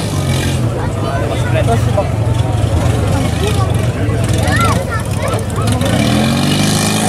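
A crowd of onlookers shouts and cheers outdoors.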